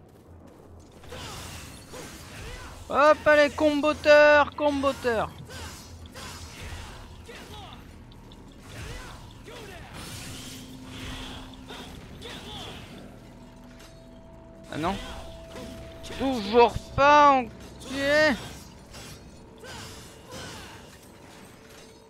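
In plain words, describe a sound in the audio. Blades slash and clang with heavy, rapid impacts.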